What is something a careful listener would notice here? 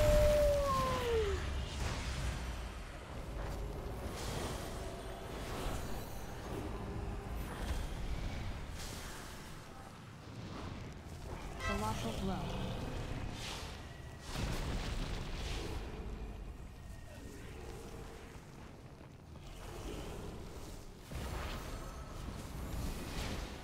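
Spell effects and combat sounds of a fantasy game chime and whoosh.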